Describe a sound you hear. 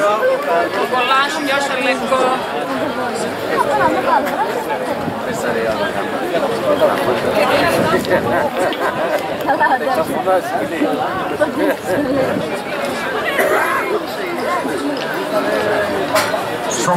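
Several men talk casually close by, outdoors.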